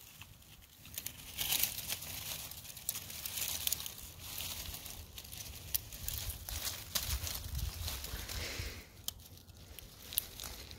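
Leafy plants rustle and snap as a hand pulls at them.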